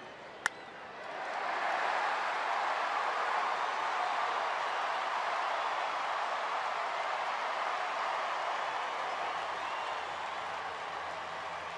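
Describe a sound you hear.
A large crowd cheers loudly in a big open stadium.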